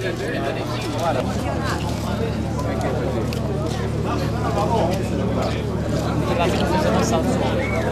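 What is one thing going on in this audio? A crowd of men chatter all around.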